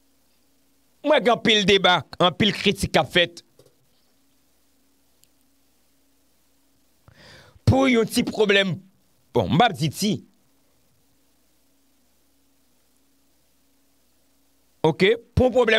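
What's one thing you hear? A young man speaks close into a microphone in short, calm bursts with long pauses.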